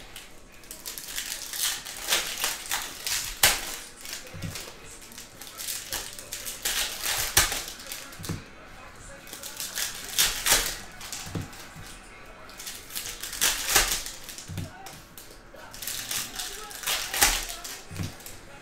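Trading cards rustle and slap against each other as a stack is shuffled by hand.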